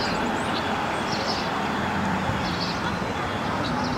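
A diesel excavator engine runs in the distance.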